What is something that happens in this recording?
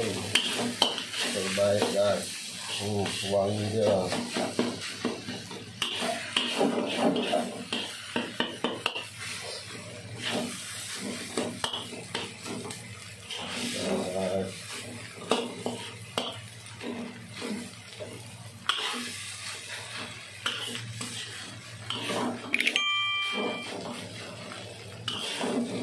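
Rice sizzles in a hot wok.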